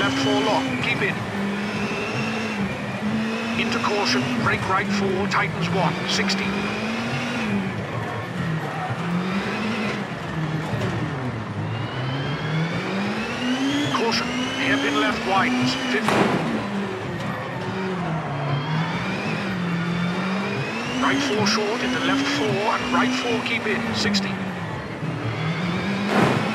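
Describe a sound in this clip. A car engine revs up and down through gear changes.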